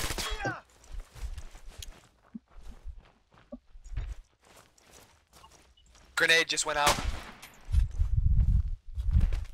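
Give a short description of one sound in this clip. Heavy footsteps thud on rubble.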